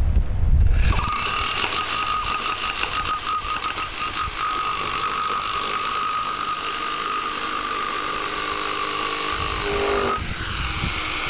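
A hammer drill pounds loudly and steadily.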